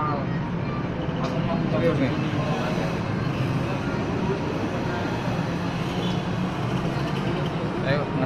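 Several men chatter nearby.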